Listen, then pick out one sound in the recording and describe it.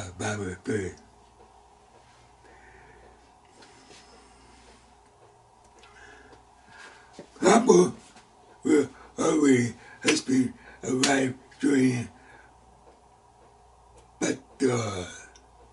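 An elderly man speaks with animation close to a microphone, pausing between phrases.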